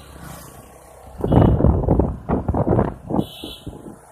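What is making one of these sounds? An auto-rickshaw engine putters as it passes by.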